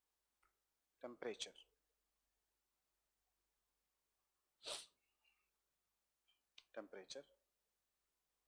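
A man speaks briefly in short bursts, close to a microphone.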